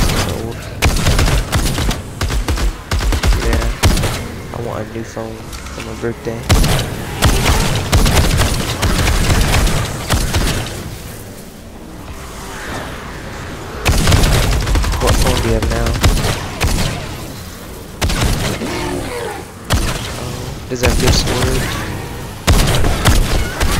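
Sword blows strike and clang repeatedly.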